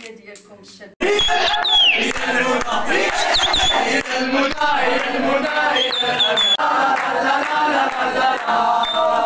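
A crowd of men and women sings and cheers loudly.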